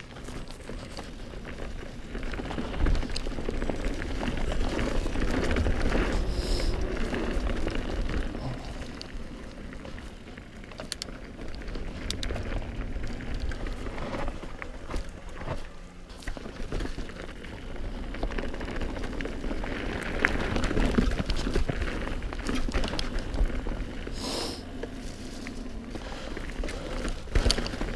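Bicycle tyres crunch and roll over dry leaves and dirt.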